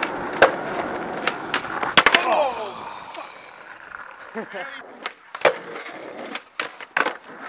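A skateboard clacks and snaps sharply against a ledge.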